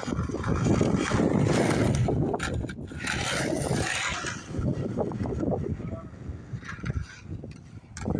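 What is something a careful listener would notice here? Skateboard wheels roll and rumble over concrete.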